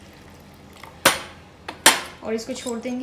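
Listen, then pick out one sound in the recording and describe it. A metal lid clinks against a metal pot.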